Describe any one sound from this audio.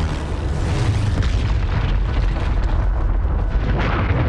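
Rocks crash and tumble down a mountainside with a deep rumble.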